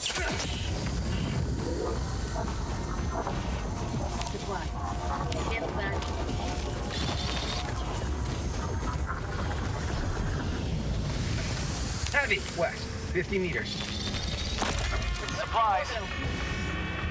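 Low rumbling battle noise rolls on steadily.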